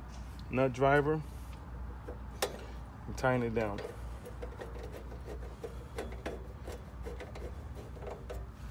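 A screwdriver turns a screw with small scraping clicks.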